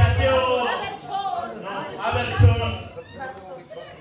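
A man speaks into a microphone, heard through a loudspeaker in a large room.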